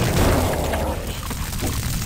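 A shotgun blast booms.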